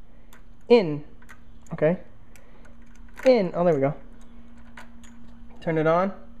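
A key clicks as it turns in an ignition switch.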